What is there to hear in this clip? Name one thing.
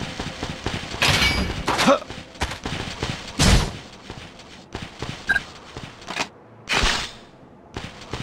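A large blade swings with a loud whoosh.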